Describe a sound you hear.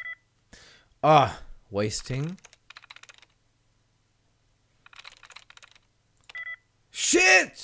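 A computer terminal beeps softly.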